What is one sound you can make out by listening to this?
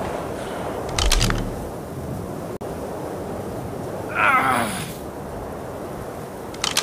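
Menu clicks sound as items are selected.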